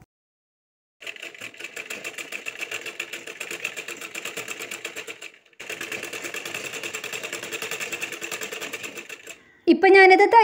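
A sewing machine runs with a fast, steady clatter.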